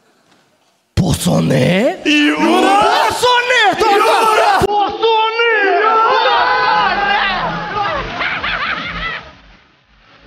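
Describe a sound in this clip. Young men shout and laugh loudly into microphones.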